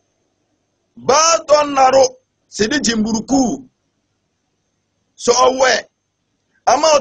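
A man speaks calmly and deliberately into a close microphone, pausing between phrases.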